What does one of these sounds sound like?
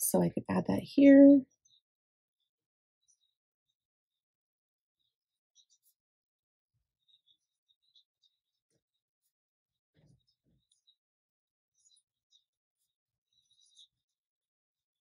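A pencil scratches softly on paper.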